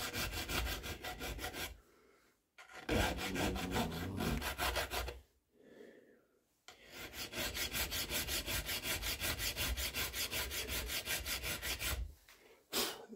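A hand file rasps on metal in rapid strokes.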